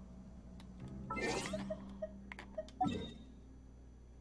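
A game menu opens with a quick whooshing chime.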